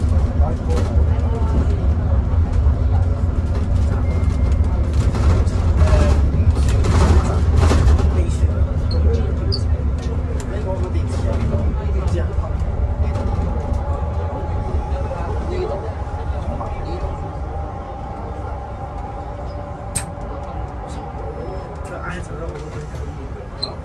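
The bus rattles and creaks as it drives along.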